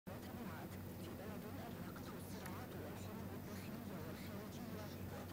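A young woman speaks steadily and clearly into a microphone, reading out.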